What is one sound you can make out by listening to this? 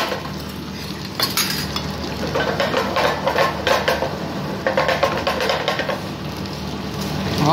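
A gas burner hisses and roars steadily.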